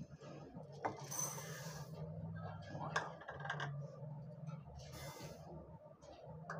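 Dry lentils pour and rattle into a glass bowl.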